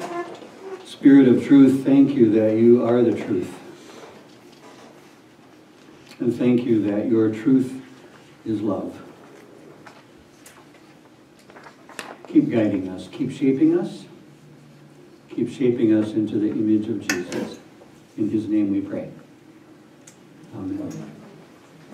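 A middle-aged man speaks calmly in short phrases, close by, with pauses between them.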